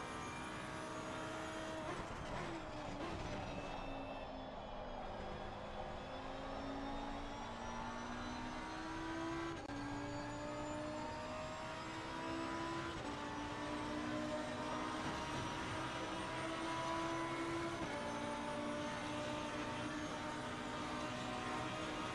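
A racing car engine roars, rising in pitch and dropping as the gears shift.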